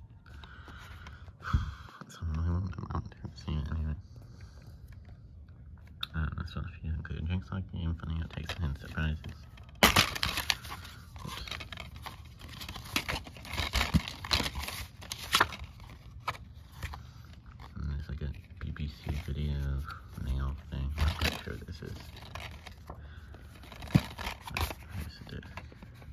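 A plastic disc case clicks and clatters as hands handle it.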